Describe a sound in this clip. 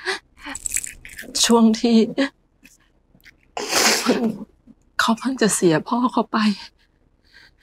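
A woman speaks close by in a tearful, emotional voice.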